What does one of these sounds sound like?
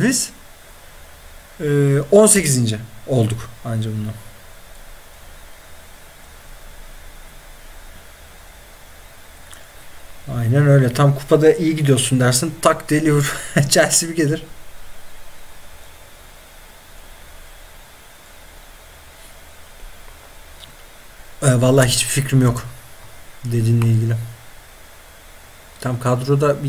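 A young man talks into a close microphone in short bursts, with pauses between.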